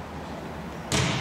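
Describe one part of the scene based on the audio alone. A volleyball is struck hard with a hand.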